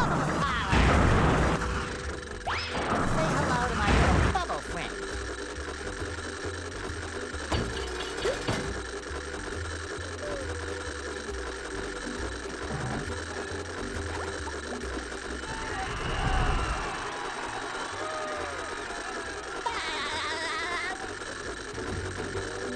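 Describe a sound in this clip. Bouncy cartoon game music plays steadily.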